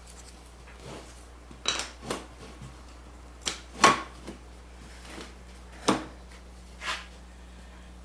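Wooden boards knock and clatter as they are pushed into place.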